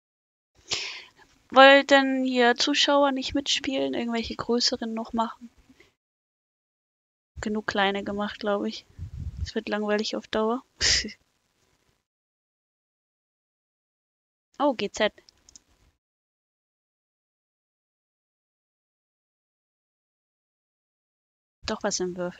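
A young woman talks calmly into a close microphone, pausing now and then.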